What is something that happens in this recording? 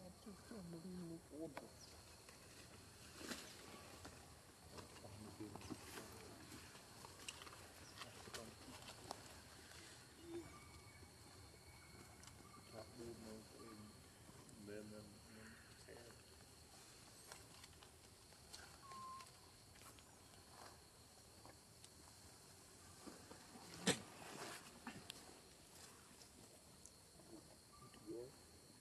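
A baby monkey squeaks softly nearby.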